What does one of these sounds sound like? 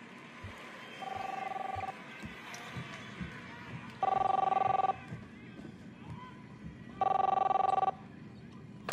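A telephone rings in repeated bursts.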